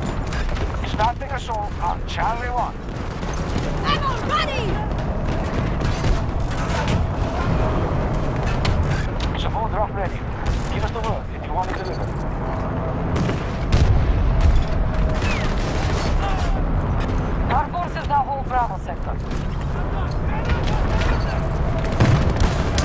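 Distant gunfire and explosions rumble steadily in a battle.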